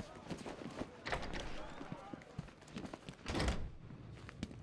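Heavy metal doors clank open.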